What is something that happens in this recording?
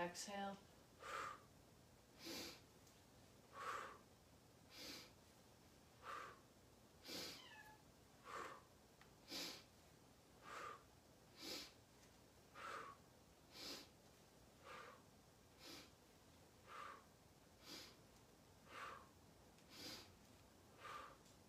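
A woman breathes out sharply in a steady, even rhythm.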